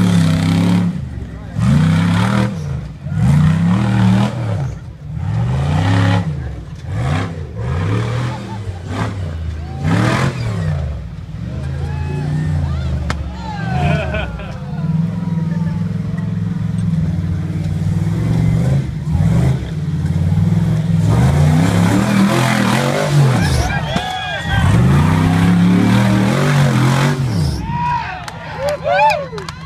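An off-road vehicle's engine revs up and down loudly throughout.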